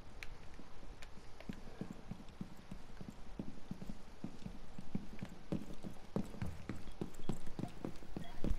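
Footsteps thud quickly up wooden stairs and across a floor.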